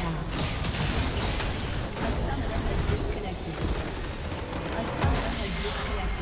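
Magic spells crackle and whoosh in a fierce fight.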